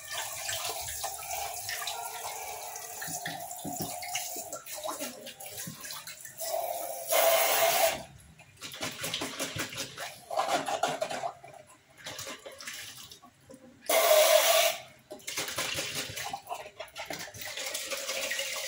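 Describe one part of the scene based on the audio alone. Glass and metal dishes clink and knock together.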